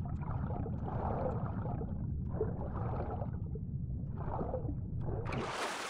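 A low wind rumbles steadily.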